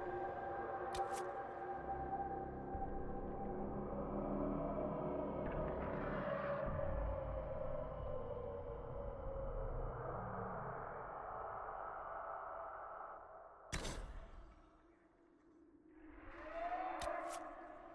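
A short click sounds as a menu selection changes.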